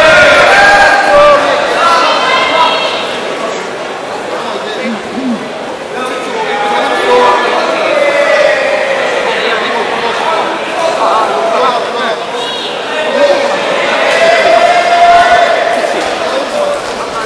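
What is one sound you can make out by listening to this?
A crowd of people shouts and calls out in a large echoing hall.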